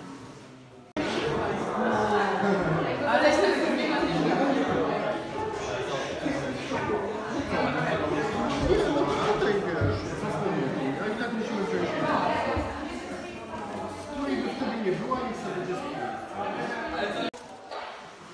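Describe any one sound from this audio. Several people talk and murmur nearby in an echoing hall.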